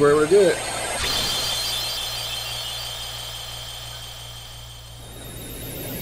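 A magical burst flares with a bright, shimmering ring that slowly fades.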